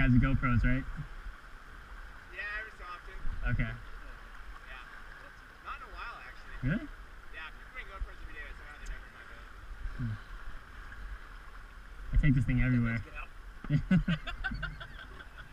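A man talks and laughs nearby.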